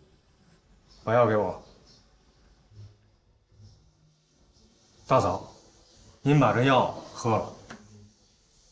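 A man speaks quietly to a woman indoors.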